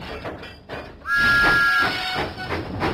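A steam engine whistle toots.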